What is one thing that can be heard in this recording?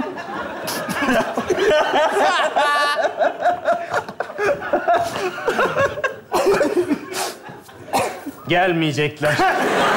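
Several young men laugh.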